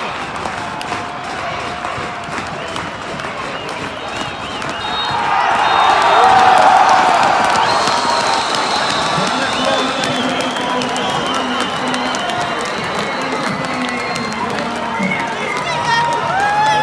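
A crowd of fans sings and chants together.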